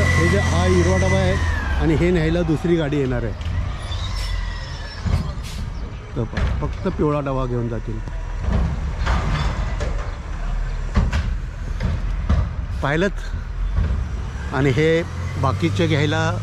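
A garbage truck engine rumbles steadily outdoors.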